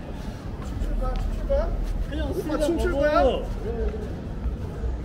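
Young men talk casually as they pass close by.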